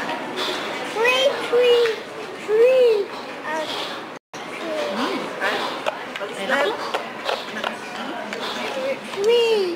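A little child babbles and squeals.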